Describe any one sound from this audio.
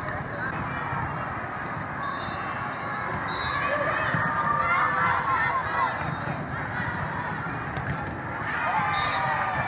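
A volleyball thumps off players' hands.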